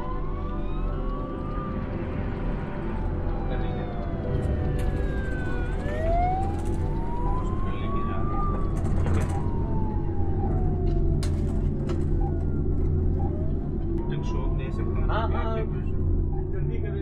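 An ambulance siren wails, rising and falling.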